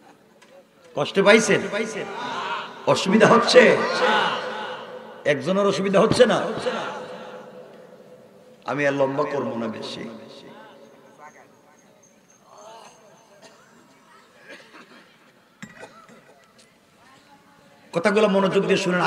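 A man preaches loudly and with animation through a microphone, his voice echoing over a loudspeaker.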